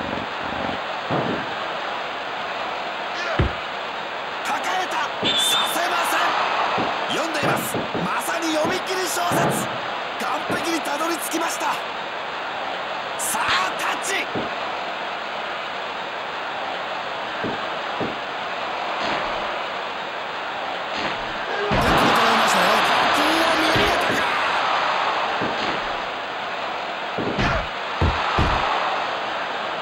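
A crowd roars and cheers.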